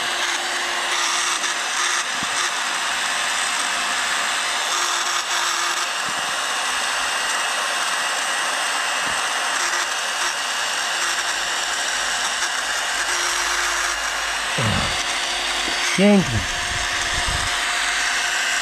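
A small handheld vacuum whirs steadily at close range.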